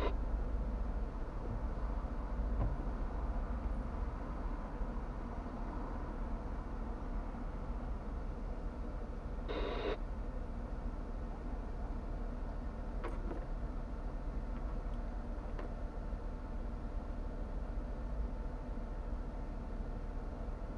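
A car engine idles, heard from inside the car.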